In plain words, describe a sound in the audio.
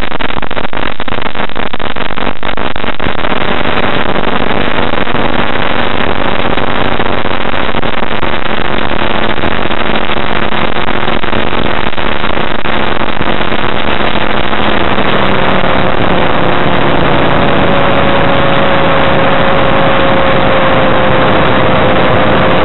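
An aircraft engine drones loudly and steadily, its pitch shifting as the plane manoeuvres.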